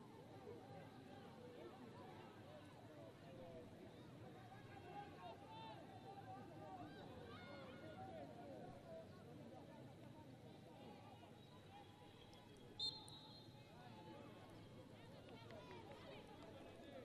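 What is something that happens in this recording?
A crowd of spectators chatters and calls out in the open air.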